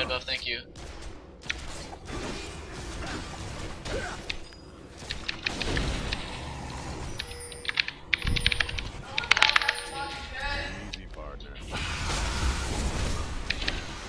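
Game sound effects of spells and clashes play.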